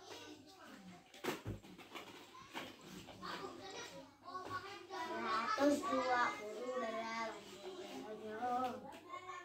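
Plastic balls clatter softly as a child handles them.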